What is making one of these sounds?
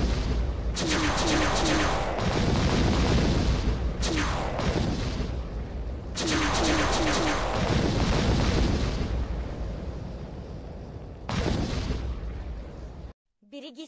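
Explosions boom and crackle in repeated bursts.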